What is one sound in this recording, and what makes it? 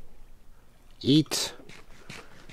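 A sharp hit sounds, followed by a short puff.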